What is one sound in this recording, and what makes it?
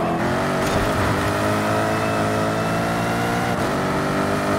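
A car engine drops in pitch briefly at a gear change.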